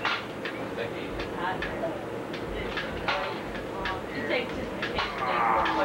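Several people talk casually nearby.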